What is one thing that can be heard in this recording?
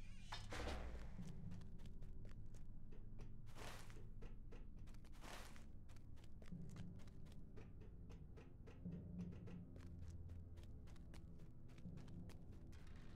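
Footsteps clatter on a stone floor.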